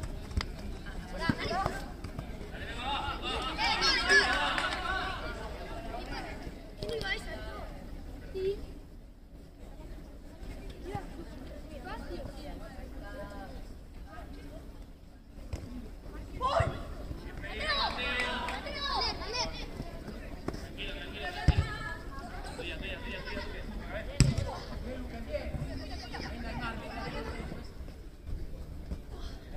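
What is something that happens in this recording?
Young players shout and call out to each other across an open pitch outdoors.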